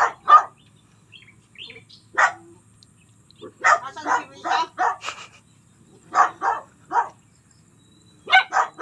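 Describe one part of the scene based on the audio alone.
A small dog barks in short, sharp bursts.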